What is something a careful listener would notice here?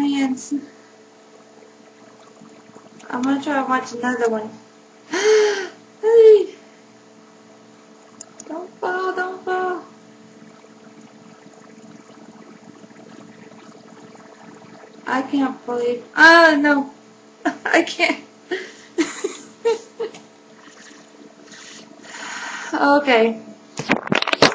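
A young woman talks and laughs close to a microphone, in bursts.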